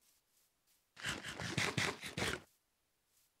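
Food is munched and chewed noisily.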